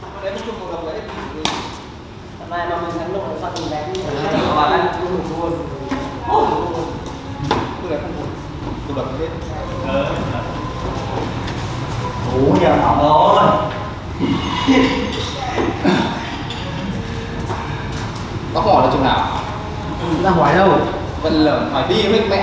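Men talk and call out loudly in an echoing hall.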